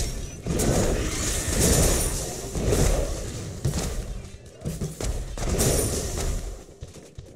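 Explosions boom and crackle in bursts.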